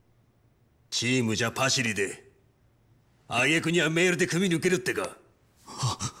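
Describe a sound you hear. A man grunts and shouts.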